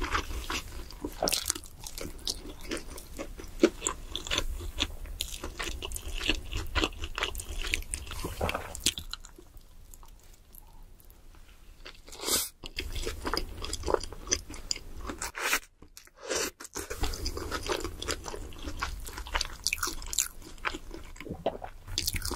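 A young woman crunches and chews fried food loudly, very close up.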